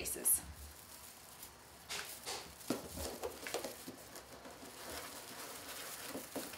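Plastic mesh ribbon crinkles and rustles.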